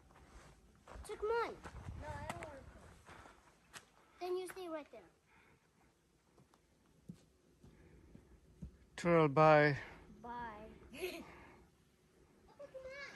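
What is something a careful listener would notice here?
A young child talks and calls out in a high voice nearby, outdoors.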